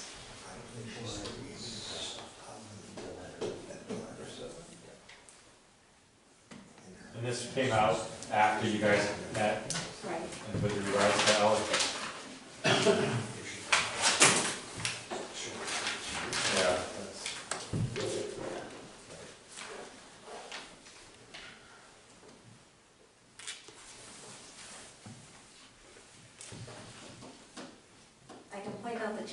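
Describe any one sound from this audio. Middle-aged men talk calmly.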